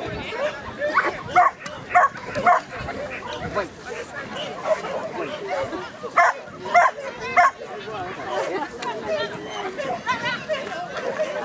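A woman calls out commands to a dog.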